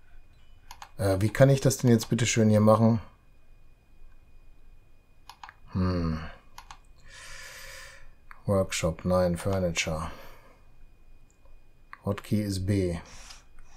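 A middle-aged man talks calmly into a close microphone, in short bursts.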